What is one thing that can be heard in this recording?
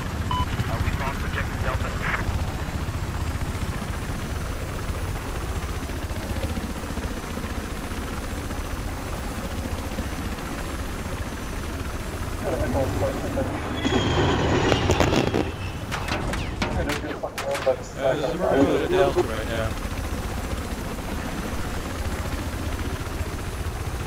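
A helicopter's rotor thumps steadily and loudly close by.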